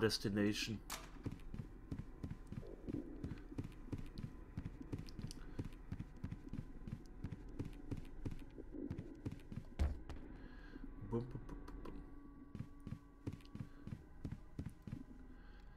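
Footsteps tap at a steady walking pace.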